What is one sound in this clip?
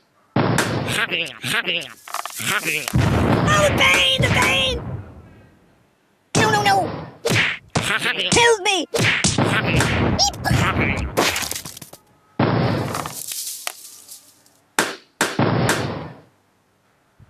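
Cartoonish thuds and pops burst out again and again.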